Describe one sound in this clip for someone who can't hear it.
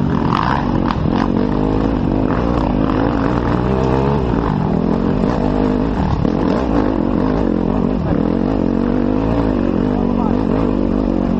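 A dirt bike engine revs loudly up close, rising and falling in pitch.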